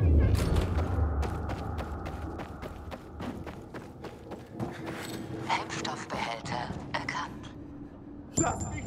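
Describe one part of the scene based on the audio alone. Footsteps tread steadily over a hard floor.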